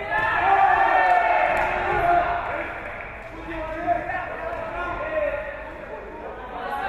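Spectators shout and cheer loudly around the fighters.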